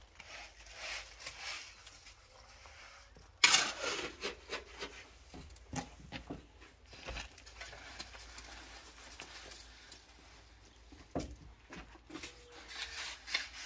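A metal trowel scrapes and taps on a concrete block.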